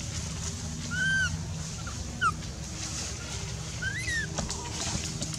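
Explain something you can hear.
A baby monkey squeals in short, high cries.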